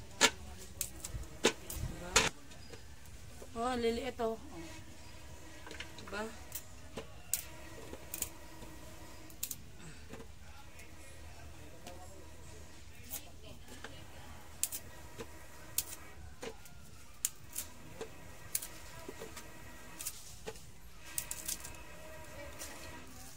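Bananas knock and clatter against a metal pot.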